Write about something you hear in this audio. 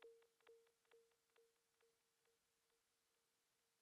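A synthesizer plays a short repeating note that echoes and fades away.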